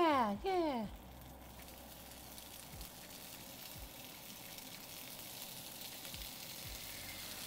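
Bacon sizzles and crackles in a hot pan, growing louder.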